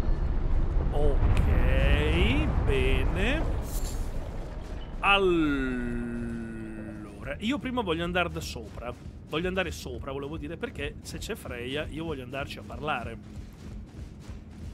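A man speaks with animation into a nearby microphone.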